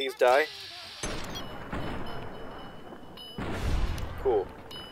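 Gunshots boom and echo.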